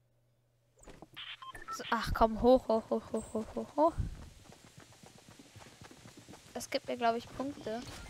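Footsteps run over grass and wooden planks.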